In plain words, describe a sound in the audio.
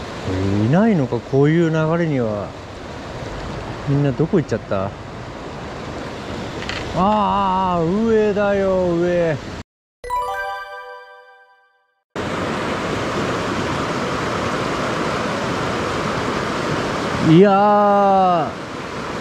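A mountain stream rushes over rocks nearby.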